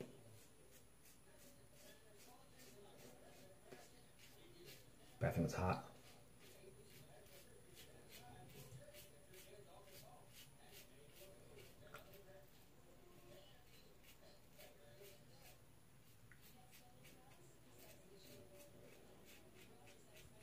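A razor scrapes rhythmically across stubble close by.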